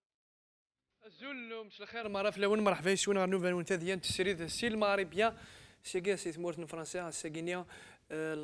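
A young man speaks steadily into a microphone.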